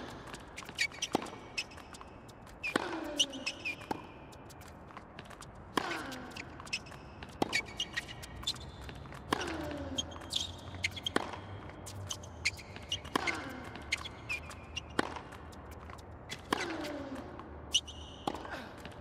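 A tennis ball is struck hard with a racket, back and forth.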